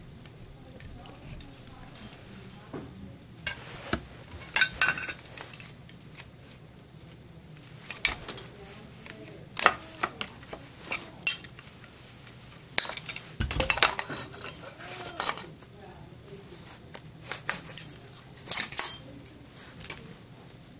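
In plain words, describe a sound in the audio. Plastic and metal parts click and clatter as they are handled close by.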